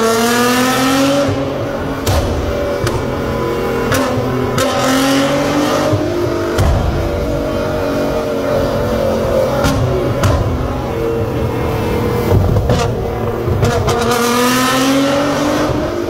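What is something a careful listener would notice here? A sports car engine revs loudly and rises and falls in pitch, echoing in an enclosed room.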